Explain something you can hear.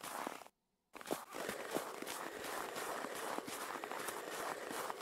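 A snow pusher scrapes and shoves through packed snow.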